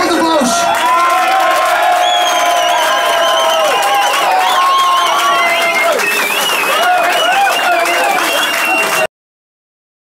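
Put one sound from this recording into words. Several men sing together loudly.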